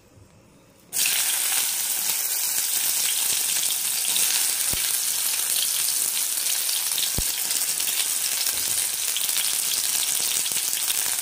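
Food sizzles and crackles steadily in hot oil in a pan.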